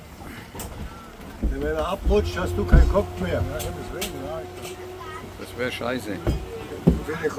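A metal anchor clanks against a boat.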